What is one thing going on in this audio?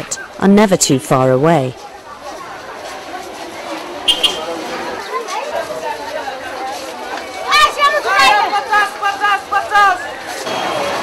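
Men call out loudly nearby.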